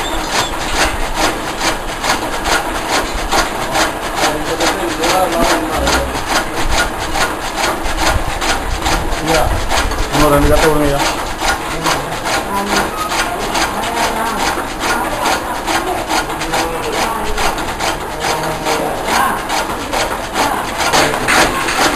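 A chaff cutter's blades chop rapidly with a fast, rhythmic clatter.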